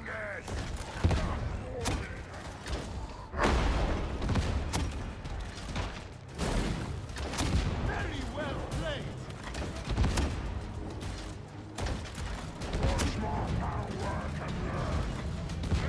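Gunfire cracks in repeated loud bursts.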